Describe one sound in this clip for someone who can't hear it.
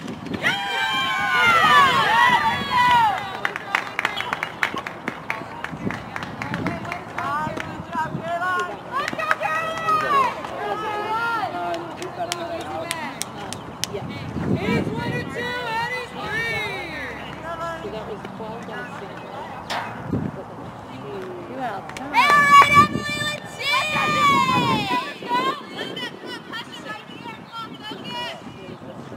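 Young women cheer and chant loudly nearby, outdoors.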